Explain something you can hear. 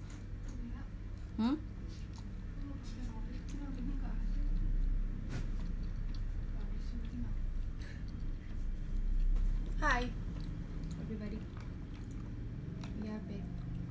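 A young woman chews noodles close by.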